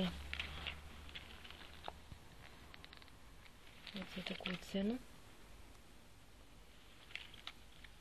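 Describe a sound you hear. A paper tag crinkles between fingers.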